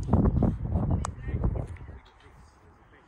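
A horse's hooves clump on a hollow ramp.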